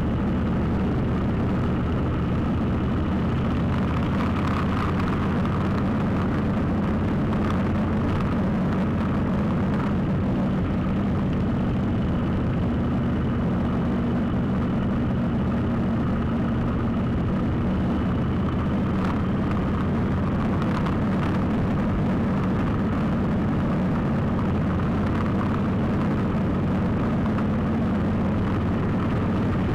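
Wind roars loudly past the rider.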